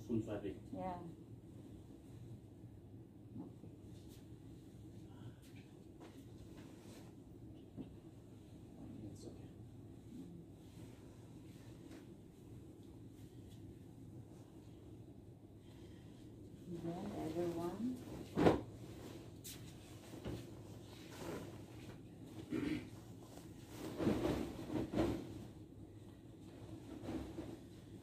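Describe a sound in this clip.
A duvet rustles and flaps as it is shaken out.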